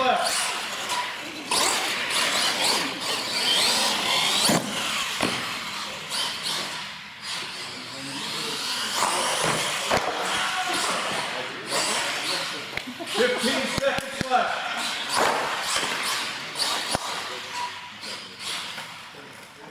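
A small electric motor whines and revs as a remote-control truck drives fast.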